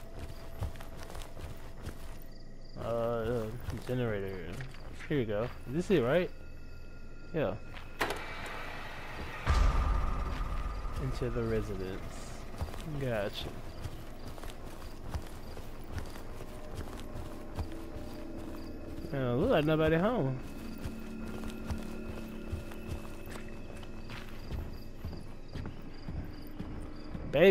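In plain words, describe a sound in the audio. Footsteps crunch softly on grass and gravel.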